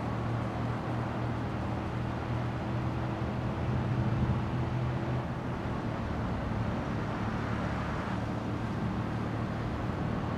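A car engine roars steadily as a vehicle speeds along.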